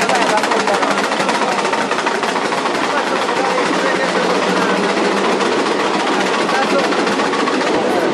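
A crowd of men and women chatter loudly close by.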